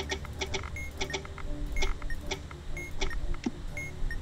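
Short soft clicks sound now and then.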